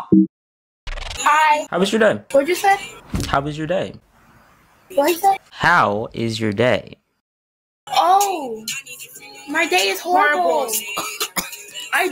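A young man talks with animation over an online call.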